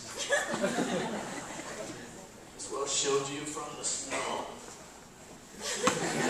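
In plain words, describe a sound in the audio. Young performers speak lines on a stage in a large echoing hall.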